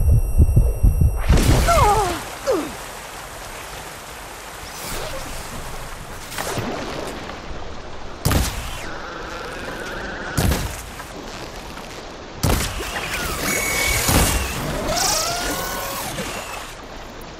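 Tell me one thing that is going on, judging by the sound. A bowstring twangs as arrows are loosed.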